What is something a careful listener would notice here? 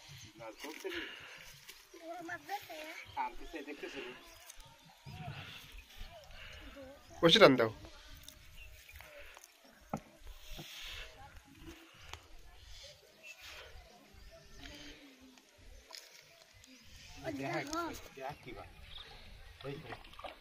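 Water splashes softly as hands pull at floating plants.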